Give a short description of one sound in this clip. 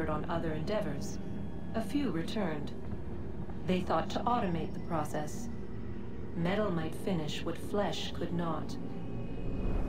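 A woman speaks calmly and solemnly through a microphone.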